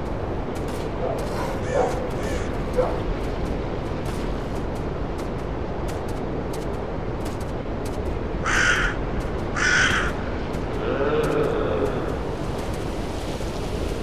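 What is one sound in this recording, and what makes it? Wind blows steadily through forest trees outdoors.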